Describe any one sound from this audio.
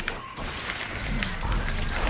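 An energy weapon crackles and hums.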